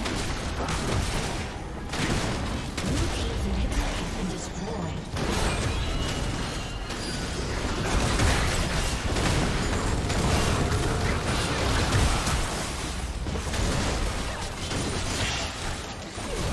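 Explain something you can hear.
Magic spells blast and weapons clash in a hectic battle.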